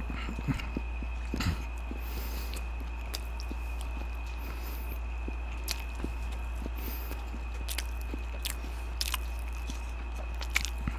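A man chews food with wet, crunchy sounds close to a microphone.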